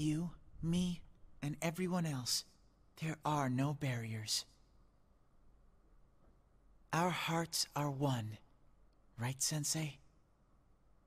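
A young man speaks casually and close into a microphone.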